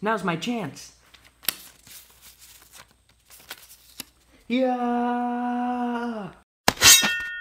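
Paper rustles and taps as a hand handles a small card disc.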